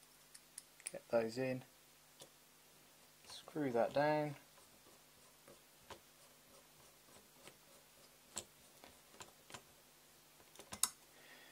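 Hard plastic parts click and tap softly as they are handled.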